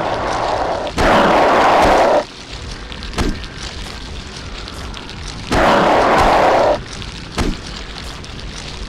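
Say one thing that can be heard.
A metal pipe swings and strikes a creature with heavy thuds.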